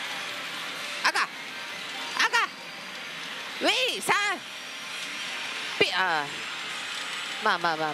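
A gaming machine plays short bright electronic chimes as its reels stop one by one.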